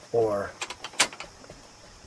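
A car radio push button clicks.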